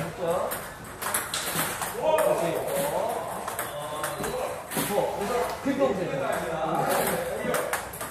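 A ping-pong ball clicks off paddles and a table.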